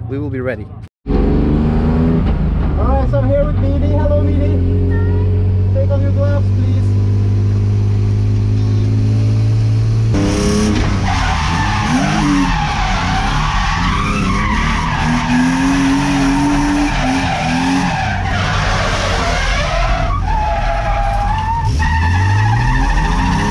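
A car engine roars loudly from inside the cabin, revving up and down.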